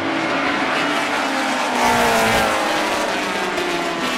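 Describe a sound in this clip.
A racing car roars past up close.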